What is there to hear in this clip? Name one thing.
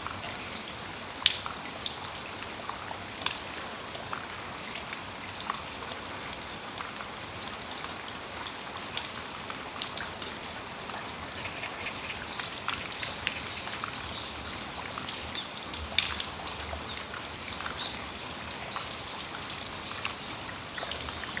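Rain drips steadily from a roof edge, with scattered sharp taps.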